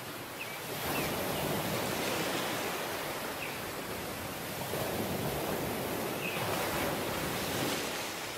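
Waves wash up onto the shore and hiss as they draw back.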